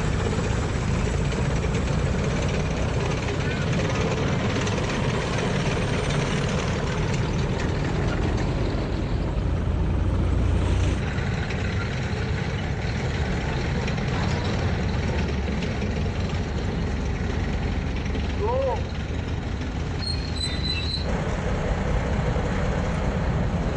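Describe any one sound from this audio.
A tracked armoured vehicle's diesel engine rumbles as it drives past.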